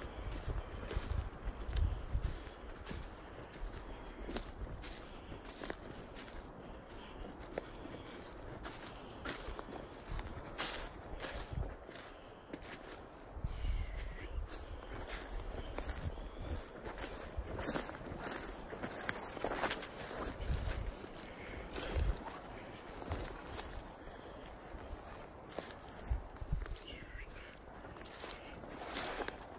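Footsteps crunch on dry leaf litter outdoors.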